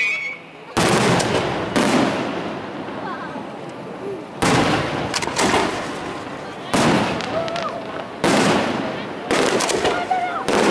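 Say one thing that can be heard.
Fireworks crackle after the bursts.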